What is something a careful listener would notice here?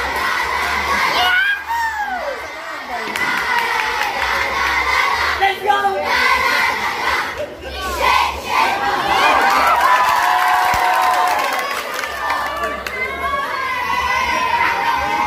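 A large crowd of young people chants and cheers loudly outdoors.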